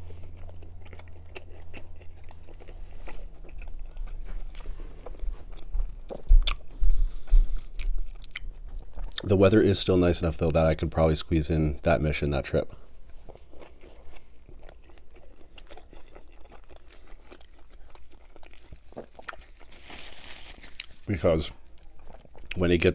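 A man chews food with wet, smacking sounds close to a microphone.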